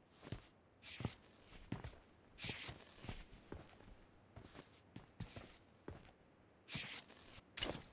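Footsteps run over grass and dirt.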